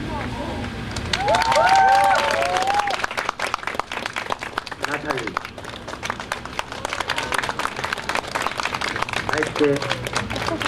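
A crowd claps hands steadily.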